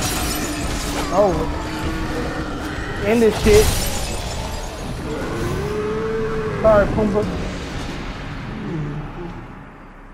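A huge creature roars and shrieks.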